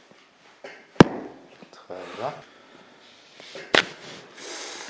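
Joints crack with a sharp pop.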